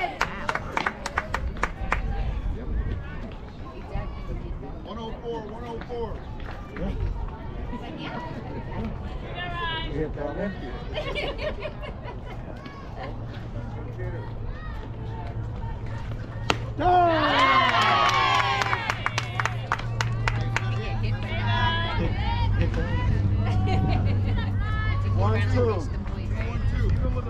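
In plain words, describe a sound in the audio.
Players and spectators call out and chatter outdoors.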